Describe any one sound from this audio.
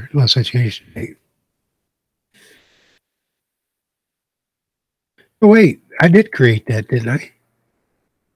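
A man talks casually and close into a microphone, in short bursts.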